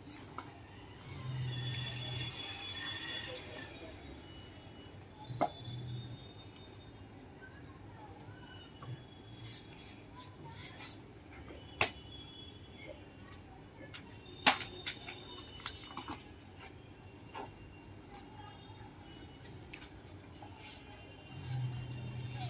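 Paper sheets rustle and flap as they are handled.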